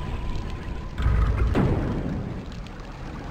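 A heavy metal door grinds open.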